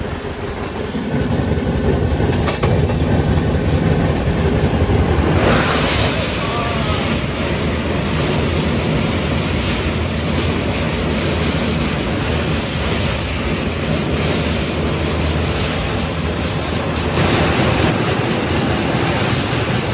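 A train rumbles steadily over a bridge.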